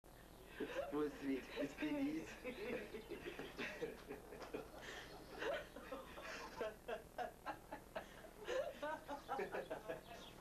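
A woman laughs heartily close by.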